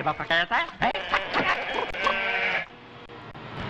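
A flock of sheep bleats loudly.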